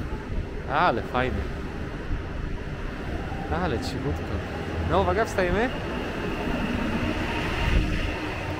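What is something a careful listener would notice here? A train rolls slowly along a platform with a low rumble.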